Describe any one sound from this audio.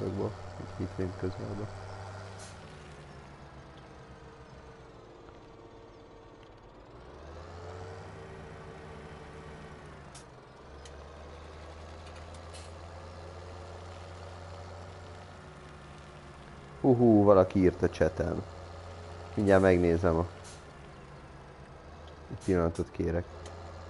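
A tractor engine hums steadily, rising and falling as it drives.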